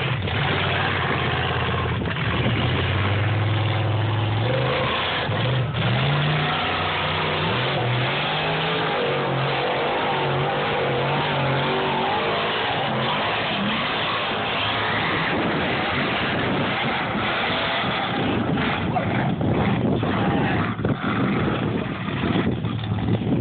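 Wind blows across an open outdoor area.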